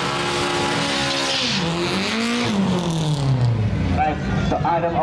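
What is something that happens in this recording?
A car engine roars loudly, then fades as the car speeds away.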